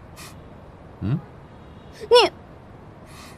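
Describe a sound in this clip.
A young man exclaims sharply, close by.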